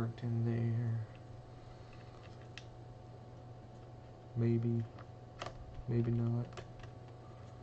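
Small plastic parts click and snap as they are fitted together.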